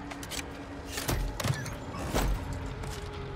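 A heavy boot stomps and smashes a metal crate with loud crashes.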